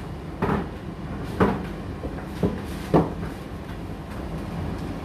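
A condenser tumble dryer hums as its drum turns.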